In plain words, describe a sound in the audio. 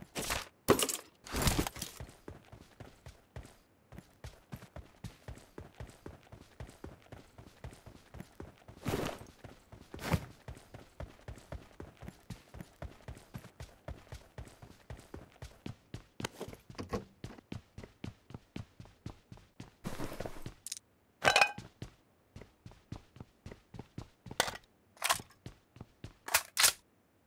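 Footsteps patter quickly and steadily as a game character runs.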